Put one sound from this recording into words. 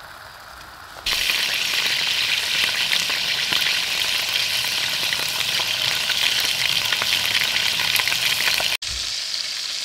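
Meat sizzles and crackles loudly in a hot frying pan.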